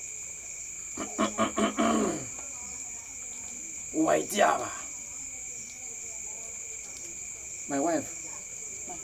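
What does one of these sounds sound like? A man speaks in short, low phrases nearby.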